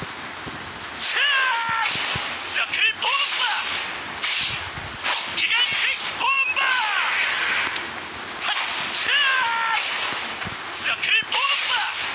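Magic sword strikes whoosh and clash in a fast fight.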